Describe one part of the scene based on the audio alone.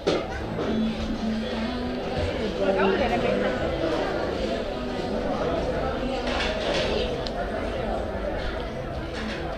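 Men and women chatter nearby in a lively crowd.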